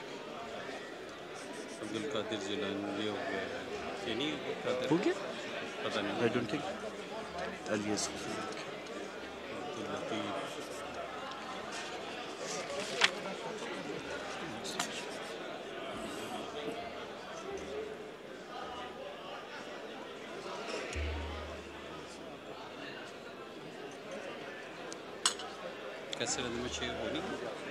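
Several men murmur and talk nearby in a large hall.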